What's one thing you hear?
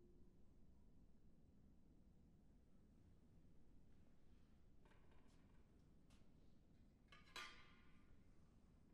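A trombone plays short, sharp muted notes that ring out in a large echoing hall.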